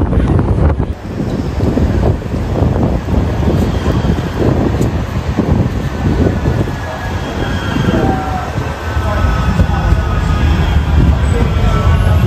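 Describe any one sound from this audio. A tram rumbles closer along the rails.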